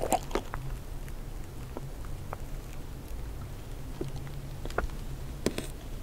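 Plastic crinkles.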